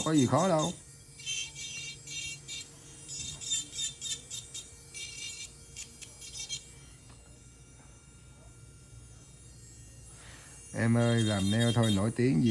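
An electric nail drill whirs softly and steadily.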